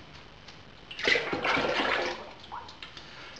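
Water pours from a container into a metal pot.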